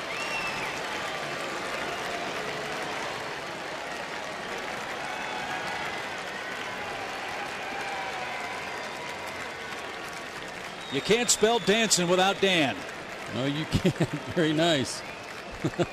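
A large stadium crowd cheers and murmurs.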